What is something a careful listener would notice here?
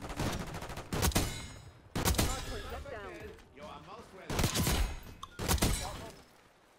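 Sniper rifle shots crack sharply, several times.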